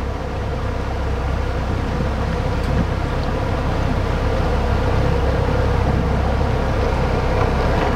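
Another motorboat approaches and passes close by, its engine growing louder.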